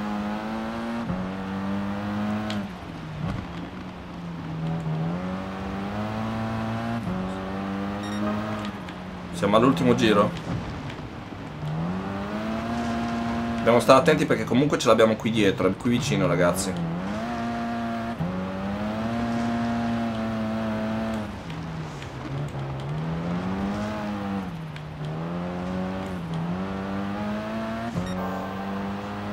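A racing car engine revs up and down steadily as gears shift.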